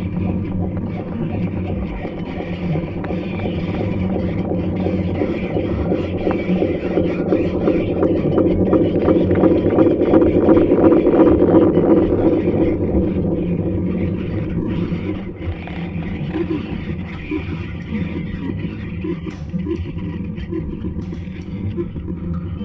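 Electronic music hums and drones steadily, swelling louder in the middle.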